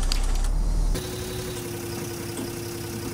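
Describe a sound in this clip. A bus engine idles with a low steady tone.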